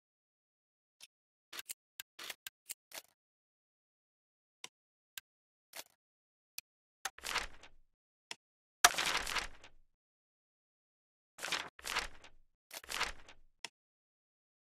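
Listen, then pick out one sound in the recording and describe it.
Short interface clicks and swishes sound one after another.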